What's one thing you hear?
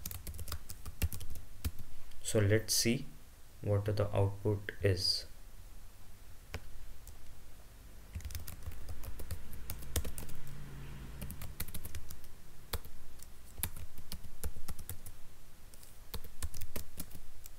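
Keys on a keyboard click in quick bursts of typing.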